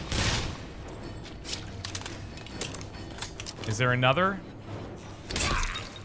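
A gun is reloaded with metallic clicks.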